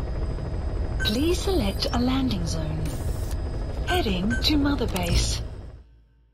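Electronic menu tones chime and beep.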